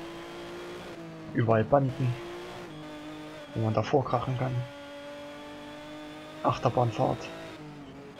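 A race car engine roars at high speed.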